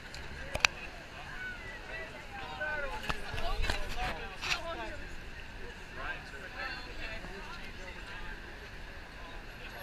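Men and women in a passing crowd chatter nearby.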